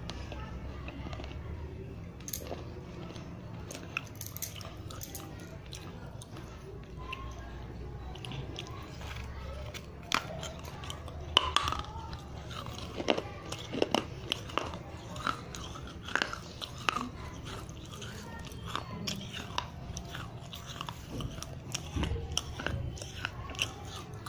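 Wet mouth sounds and lip smacks come from very close.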